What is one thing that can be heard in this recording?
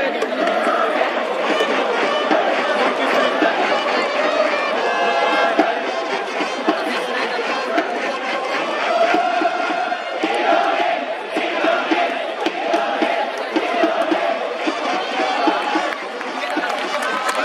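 A large stadium crowd chants and cheers loudly all around.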